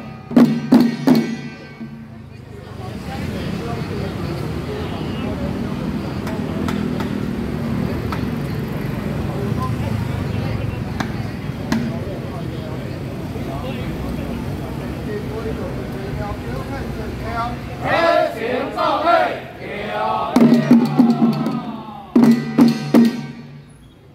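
A group of men strike drums in loud, sharp unison beats.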